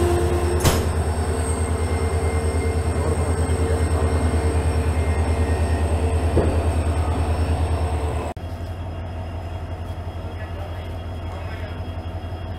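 Train wheels roll and clatter over the rails.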